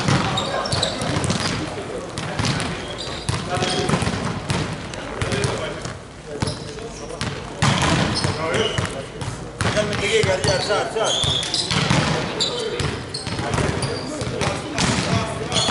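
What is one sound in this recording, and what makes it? A volleyball is struck hard and thuds, echoing in a large hall.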